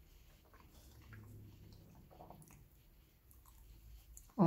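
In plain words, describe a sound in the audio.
A young man chews food.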